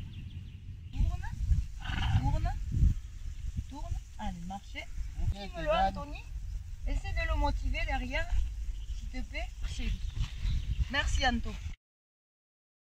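A woman speaks calmly outdoors, close by.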